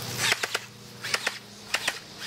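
A toy gun fires sharp snapping shots outdoors.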